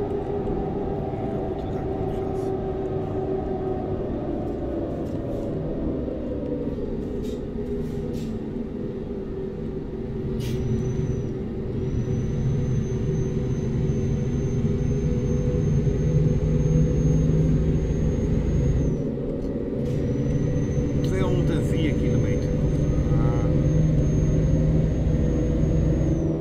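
A truck engine hums and drones steadily, dropping in pitch and then rising again.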